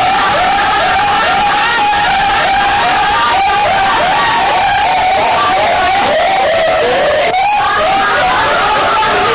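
A woman wails loudly and rapidly.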